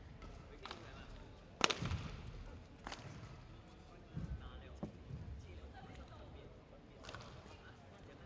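A racket strikes a shuttlecock in a quick rally.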